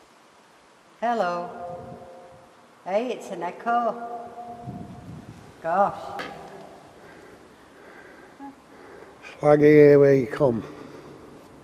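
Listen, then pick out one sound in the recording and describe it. An elderly woman speaks with animation close by, her voice echoing under a stone arch.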